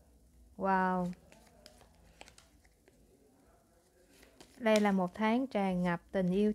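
A card slides softly onto a fabric surface.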